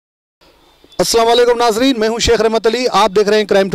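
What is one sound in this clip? A man speaks clearly into a microphone, close by.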